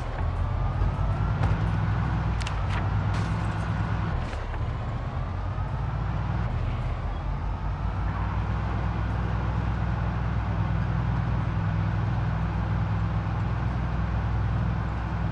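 A van engine hums steadily as the van drives along.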